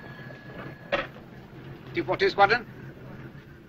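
A telephone bell rings nearby.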